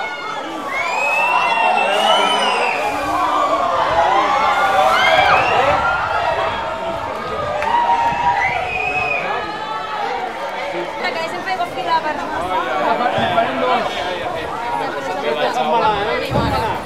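A large crowd of men and women shouts and sings loudly outdoors.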